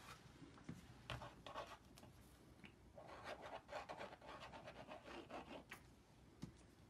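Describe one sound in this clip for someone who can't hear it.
Hands smear and rub paint on a canvas with soft scraping.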